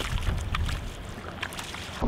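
A boot splashes as it wades through shallow water.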